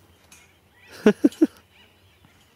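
Trampoline springs squeak and creak under bouncing.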